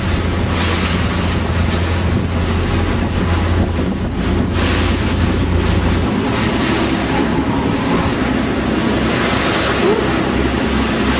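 Wind blows hard across the water.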